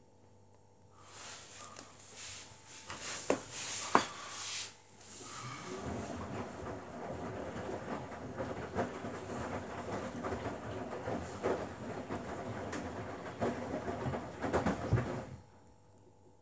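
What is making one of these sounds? A front-loading washing machine drum tumbles wet laundry.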